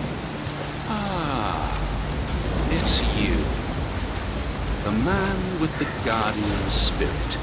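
A man speaks slowly in a low, deep voice.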